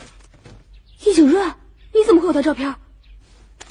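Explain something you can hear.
A young woman asks a question at close range.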